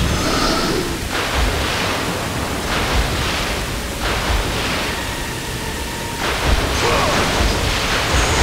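Water pours and splashes steadily from fountains.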